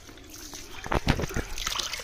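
Water splashes lightly in a metal bowl.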